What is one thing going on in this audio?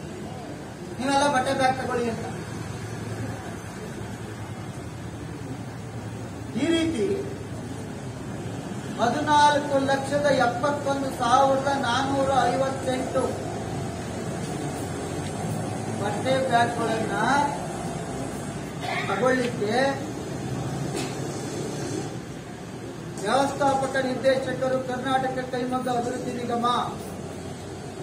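A middle-aged man speaks and reads out in bursts into a nearby microphone, with pauses between.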